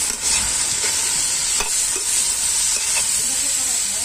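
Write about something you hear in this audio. A metal spoon scrapes and clatters against a pan.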